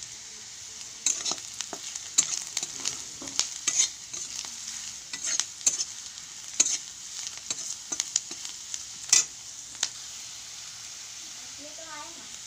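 Onions sizzle softly in hot oil.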